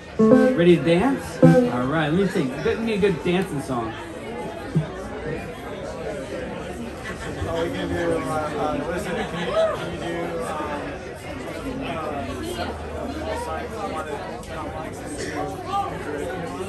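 Electric guitars play along through amplifiers.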